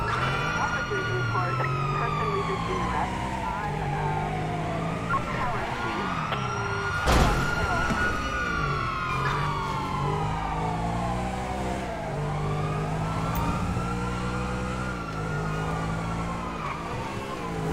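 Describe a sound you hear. A sports car engine revs up and down as the car speeds along.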